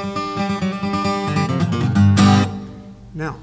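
An acoustic guitar rings out with a strummed chord and fades.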